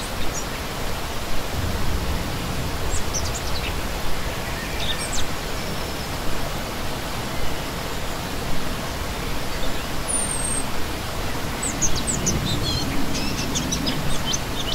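A shallow stream splashes and gurgles steadily over rocks close by.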